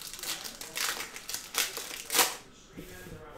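A plastic wrapper crinkles and rustles up close.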